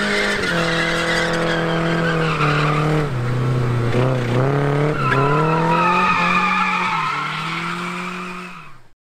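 A car engine revs loudly, its pitch rising and falling.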